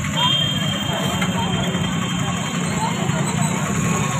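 Motorbike engines idle and rev nearby.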